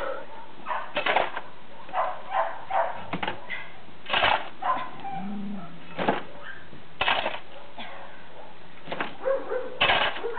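An axe chops wood with sharp, regular blows.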